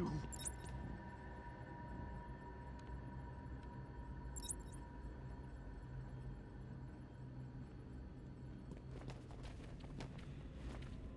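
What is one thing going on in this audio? A low, steady ambient drone hums throughout.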